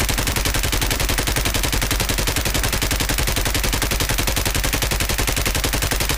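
A light machine gun fires in rapid automatic fire.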